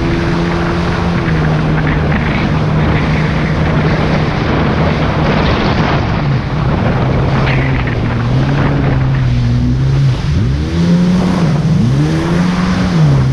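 Water splashes and rushes against the hull.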